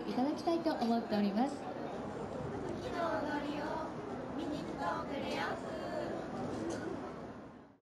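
Young women speak and laugh brightly in high voices.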